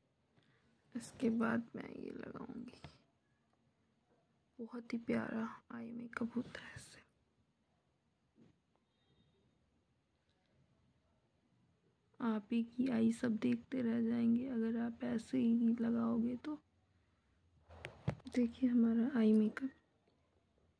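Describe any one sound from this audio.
A young woman talks calmly and close to a microphone, pausing between phrases.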